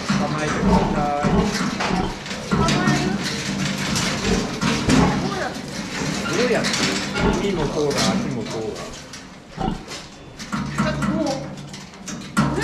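A metal crate rattles and clanks as a sow shifts inside it.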